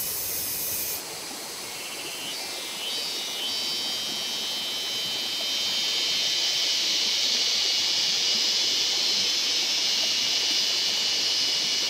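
Leaves and twigs rustle.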